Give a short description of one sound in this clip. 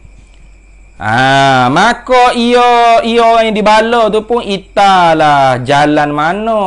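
A man chants loudly and melodiously into a close microphone.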